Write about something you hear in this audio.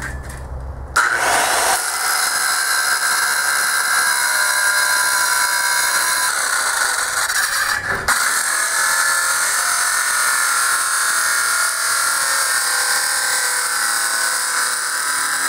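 A circular saw screeches loudly as it cuts through metal.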